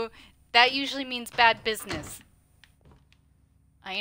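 A wooden door opens.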